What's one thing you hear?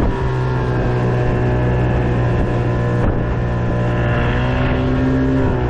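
A boat motor hums steadily.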